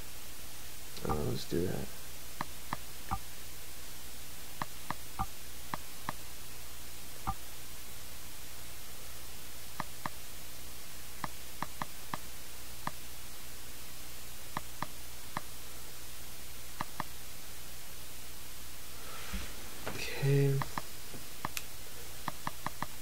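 Soft menu clicks tick now and then as selections change.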